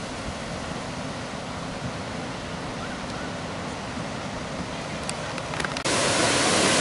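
A river flows gently nearby.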